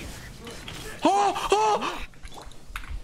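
A young man shouts loudly in excitement.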